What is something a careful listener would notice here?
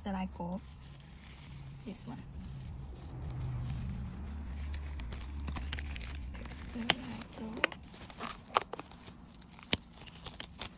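A rubber glove rustles and snaps as it is pulled onto a hand.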